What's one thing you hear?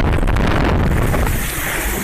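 Water sprays and splashes up around a boat as it lands.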